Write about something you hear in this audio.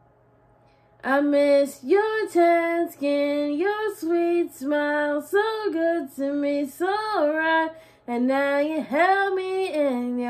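A woman sings close by, holding long notes.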